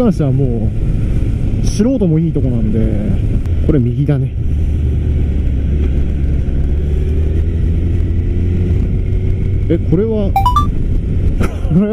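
A motorcycle engine hums steadily and revs up and down between gear changes.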